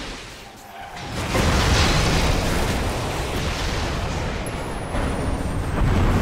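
Game combat effects crash and boom as magic blasts burst.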